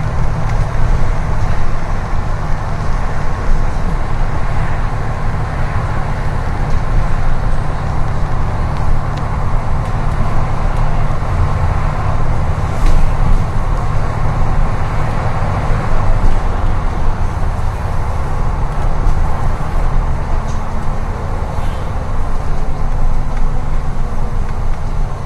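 Tyres roll on the road with a steady hiss.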